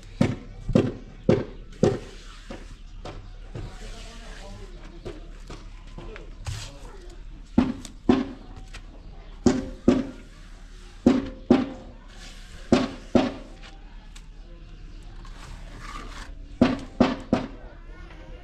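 A trowel slaps wet mortar against a wall in sharp bursts.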